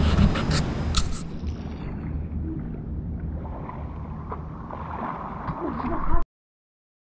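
Water splashes as a swimmer moves through a pool.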